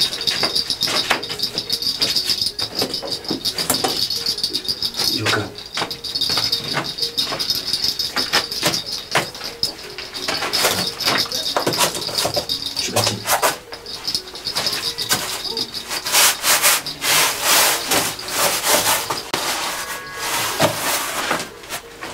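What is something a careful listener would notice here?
Gourd rattles shake and rattle in a steady rhythm.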